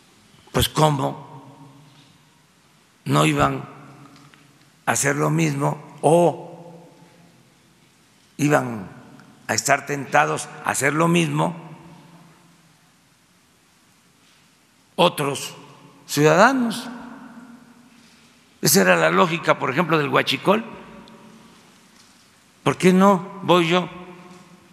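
An elderly man speaks slowly and deliberately into a microphone, with pauses between phrases, in a reverberant room.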